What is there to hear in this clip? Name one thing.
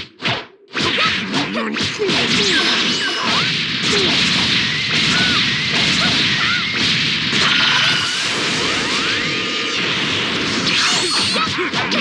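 Energy blasts roar and crackle loudly.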